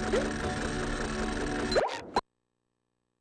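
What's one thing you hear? Cheerful game music plays.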